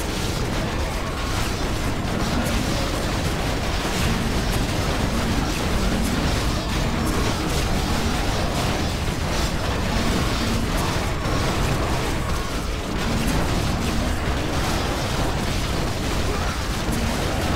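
Swords clash and spells burst in a large, busy battle.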